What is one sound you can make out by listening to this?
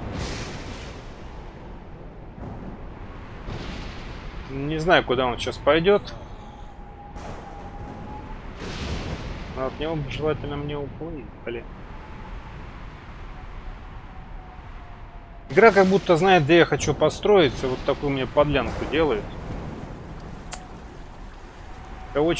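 Thunder cracks and rumbles during a storm.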